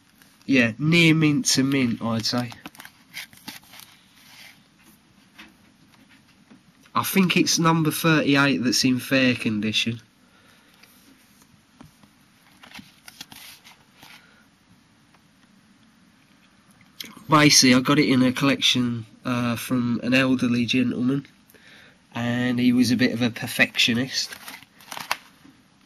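Plastic sleeves crinkle softly under a hand.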